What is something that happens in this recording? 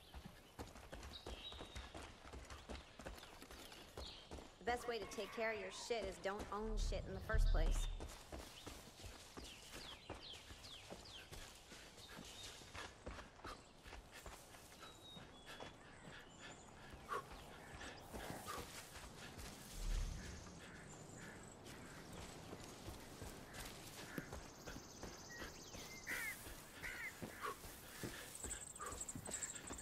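Footsteps crunch on gravel and rustle through grass.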